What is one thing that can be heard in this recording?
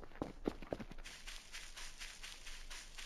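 Footsteps swish softly through grass.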